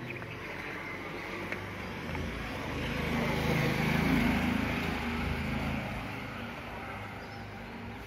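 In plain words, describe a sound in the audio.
A motorcycle passes by on the street.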